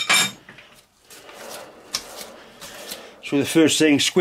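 A lathe chuck spins with a low whir.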